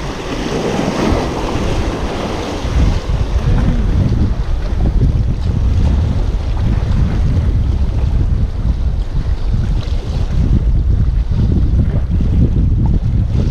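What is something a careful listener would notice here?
Small waves splash against rocks close by.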